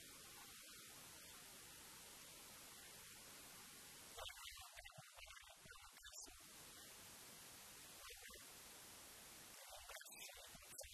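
Young men call out to each other across an open field, far off.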